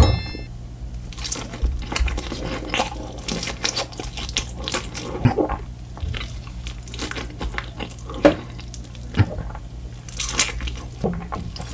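A person chews crunchy fried chicken close to a microphone.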